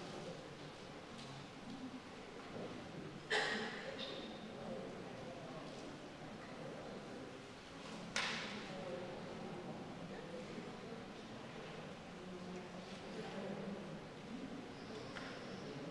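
Men and women murmur and talk quietly in a room.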